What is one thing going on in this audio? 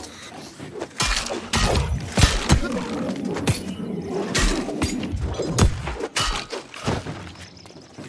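Swords clash and strike in quick, heavy blows.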